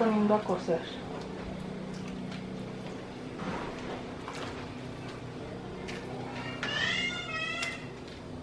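Pieces of meat drop into a pot of water with soft splashes.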